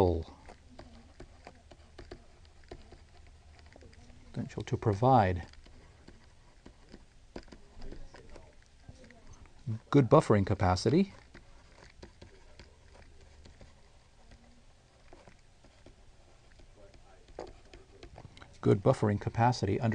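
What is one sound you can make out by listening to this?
A man speaks slowly and calmly into a close microphone, with long pauses.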